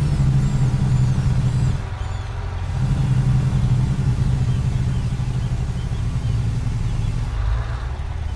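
A truck engine rumbles steadily, dropping briefly before picking up again.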